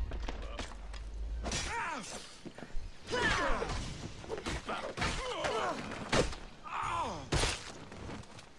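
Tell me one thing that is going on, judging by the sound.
Weapons strike and thud in a close fight.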